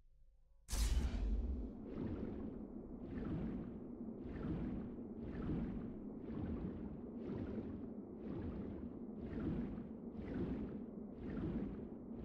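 A swimmer's strokes swish rhythmically underwater.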